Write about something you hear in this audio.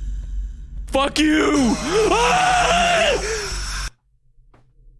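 A young man shouts in fright into a close microphone.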